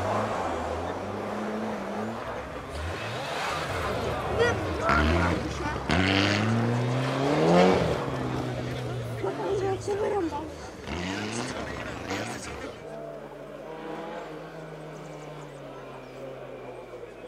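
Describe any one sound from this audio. A rally car engine revs hard and roars past close by.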